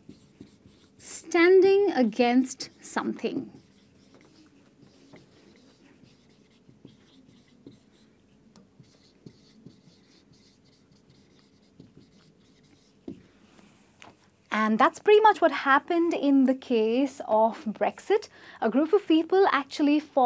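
A young woman speaks clearly and with animation close to a microphone.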